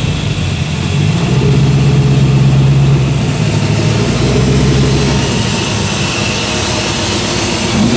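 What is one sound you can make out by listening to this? A classic muscle car engine rumbles loudly as it creeps by.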